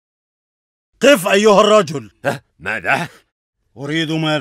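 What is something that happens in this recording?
A man speaks sharply and loudly.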